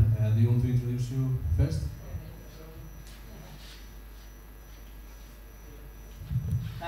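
A man speaks through a microphone with animation in a room with an echo.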